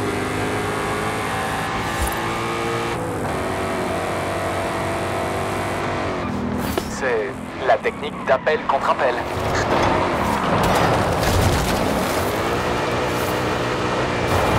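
A sports car engine roars at high revs and drops in pitch with each gear change.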